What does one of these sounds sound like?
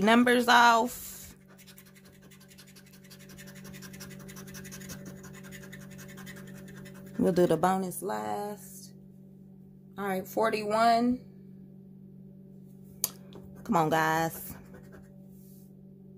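A metal edge scrapes across a scratch card.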